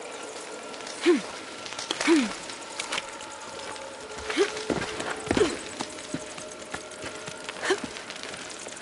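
Hands scrape and grip on rough stone.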